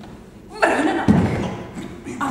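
A body thuds onto a wooden stage floor.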